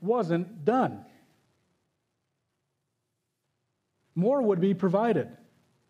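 A man speaks with emphasis through a microphone, in short bursts with pauses.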